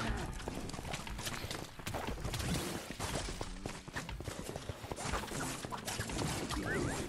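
Game combat effects clash and zap in quick bursts.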